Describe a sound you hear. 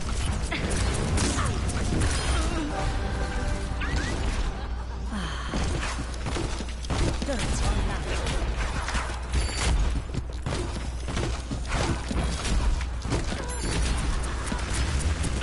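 Game explosions and impacts boom.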